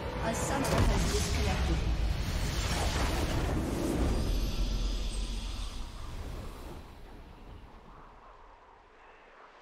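A triumphant victory fanfare swells, then fades away.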